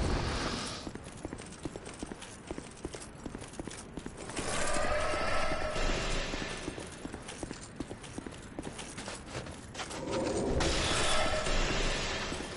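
Armoured footsteps crunch quickly through snow.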